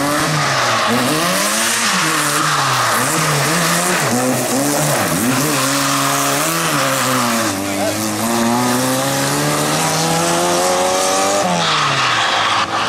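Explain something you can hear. Tyres skid and spray gravel on a loose dirt road.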